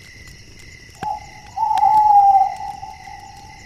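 An owl hoots in long, low calls.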